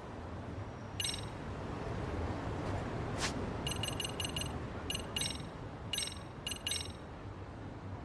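Short, bright electronic chimes ring out in quick bursts.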